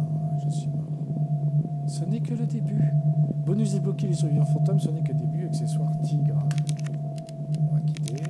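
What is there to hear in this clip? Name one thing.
A man with a headset talks quietly into a microphone.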